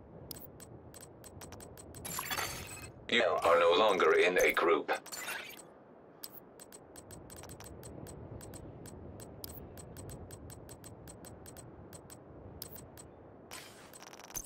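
Soft interface clicks tick quickly, one after another.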